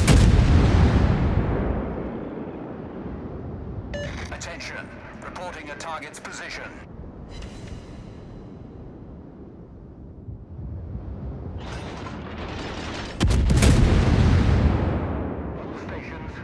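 Heavy naval guns fire with deep, rumbling booms.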